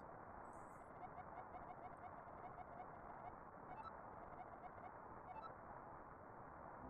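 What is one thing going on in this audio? Soft game text blips tick quickly as a message scrolls.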